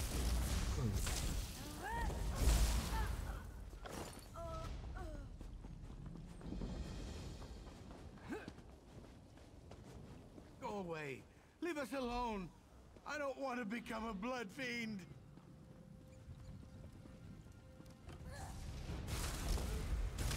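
Magic spells blast with loud roaring whooshes.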